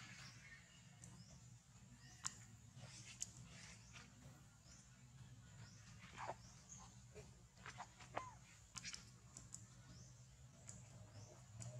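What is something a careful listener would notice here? A baby monkey's feet patter softly on stone.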